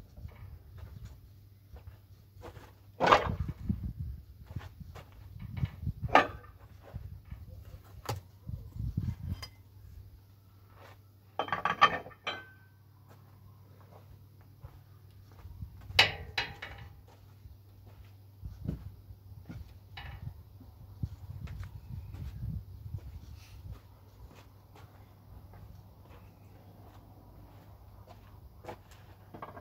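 Footsteps crunch on gravel close by.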